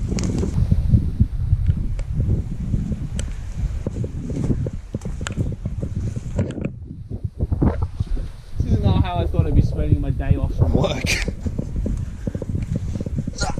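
Footsteps crunch on rock and dry grass.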